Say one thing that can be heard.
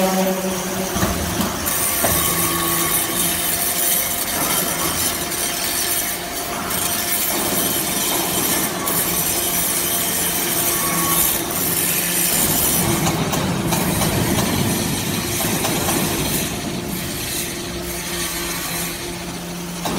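Industrial machinery hums steadily in a large echoing hall.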